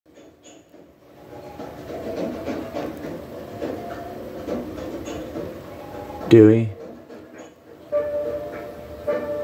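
A ceiling fan whirs softly.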